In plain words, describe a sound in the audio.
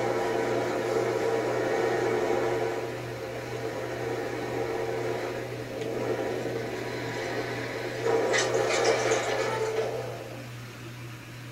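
Video game music plays through a television speaker.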